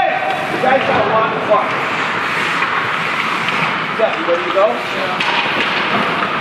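Ice skates scrape and carve across an ice rink.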